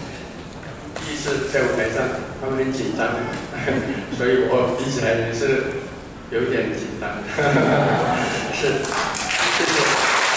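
An elderly man speaks calmly into a microphone, heard through loudspeakers in an echoing hall.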